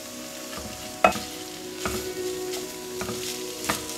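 A spatula scrapes and knocks against a frying pan.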